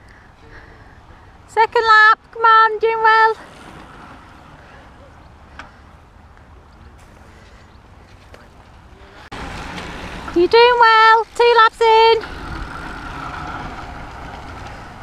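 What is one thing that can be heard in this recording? Bicycles whir past on a paved road.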